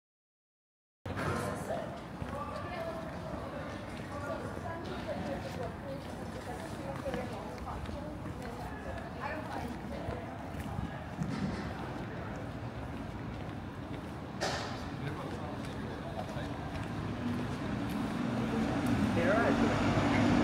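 People chat in the distance.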